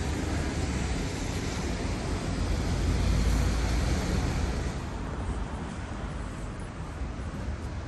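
Traffic hums steadily nearby.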